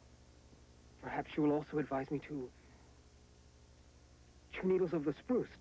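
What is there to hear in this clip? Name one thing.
A man speaks calmly and seriously, close by.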